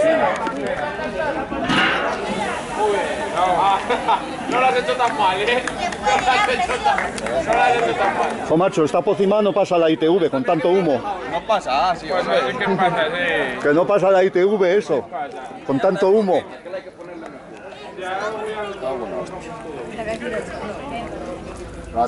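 Several people chatter and talk outdoors nearby.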